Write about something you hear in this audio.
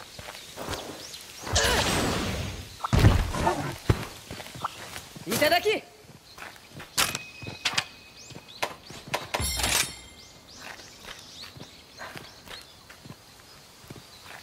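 Heavy footsteps thud and scrape over rocky ground.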